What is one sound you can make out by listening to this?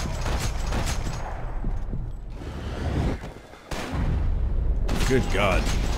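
Gunshots ring out, loud and sharp, in quick bursts.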